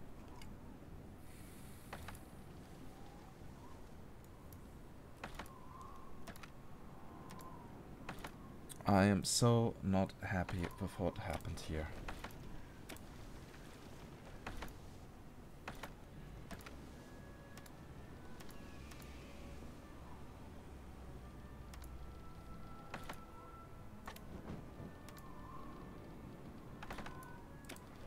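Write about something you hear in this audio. Short soft clicks sound now and then as game menus open and close.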